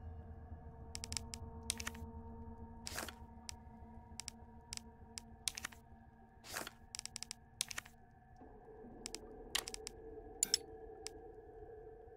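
Short electronic menu clicks tick one after another.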